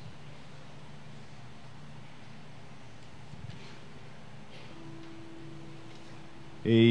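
A man speaks quietly and slowly through a microphone.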